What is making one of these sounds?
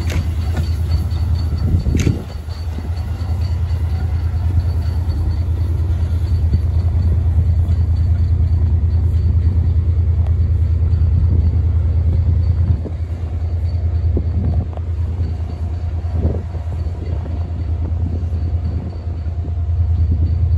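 A steam locomotive chugs steadily as it pulls away and fades.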